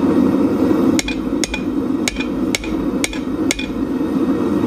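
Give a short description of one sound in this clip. A hammer rings sharply on metal in a quick series of blows.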